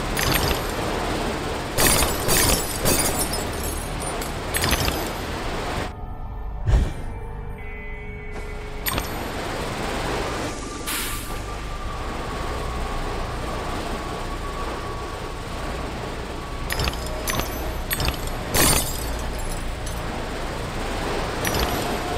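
A steady rushing whoosh of sliding at speed.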